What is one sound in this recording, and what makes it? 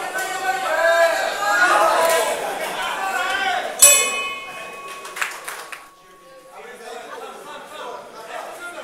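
A crowd shouts and cheers indoors.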